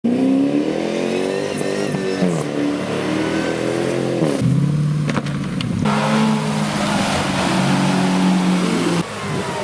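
An engine revs hard, rising and falling in pitch.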